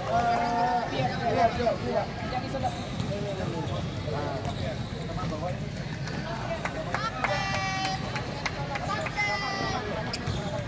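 A crowd of children and adults chatters in the background.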